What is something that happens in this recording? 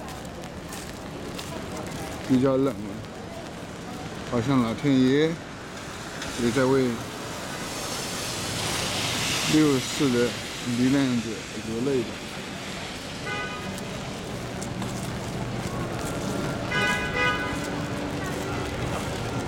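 Rain patters steadily on a wet street.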